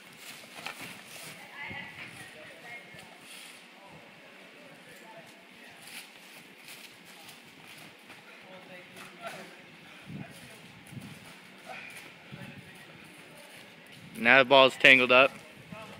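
A ball is kicked on grass with dull thuds.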